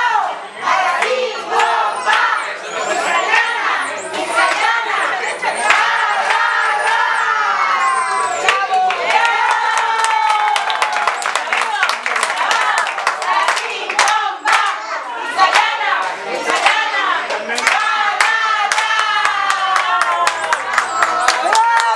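A group of adults and children sing together loudly and cheerfully.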